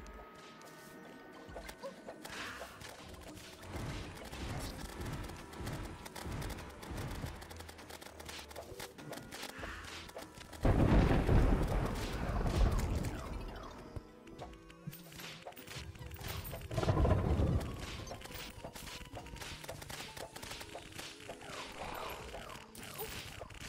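Magic weapons fire with rapid zapping and popping effects.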